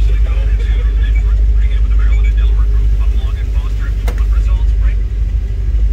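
Adult men chat casually nearby outdoors.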